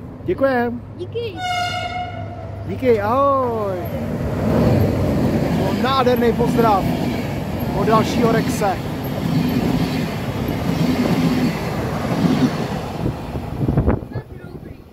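A train approaches and rumbles past loudly on the tracks.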